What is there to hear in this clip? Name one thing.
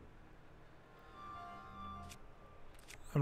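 A short electronic chime plays softly.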